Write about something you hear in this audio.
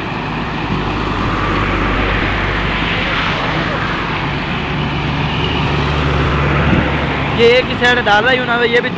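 A heavy diesel engine rumbles steadily.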